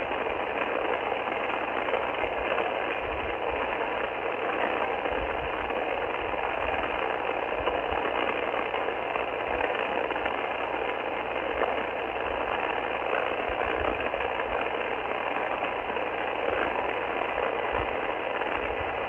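Static hisses and crackles steadily from a radio's loudspeaker.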